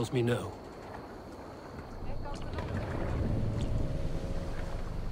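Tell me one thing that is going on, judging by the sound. Water splashes and laps against a wooden boat's hull.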